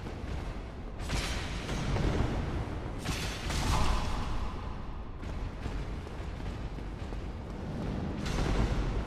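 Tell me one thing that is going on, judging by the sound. Metal weapons clash and thud in a fight.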